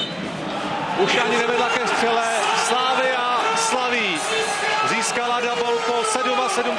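A group of men shout and cheer loudly close by.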